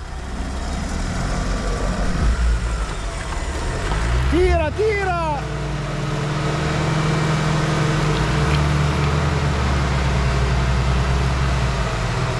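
An off-road vehicle's engine rumbles low as it crawls slowly over rocks.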